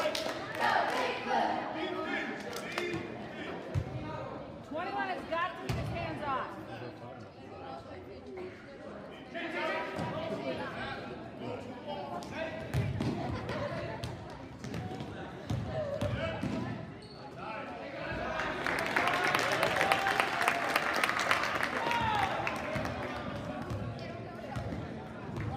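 Sneakers squeak on the court.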